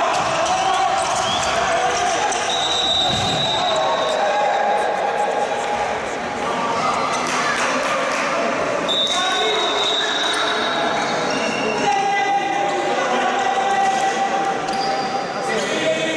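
Handball players' shoes squeak on an indoor court floor.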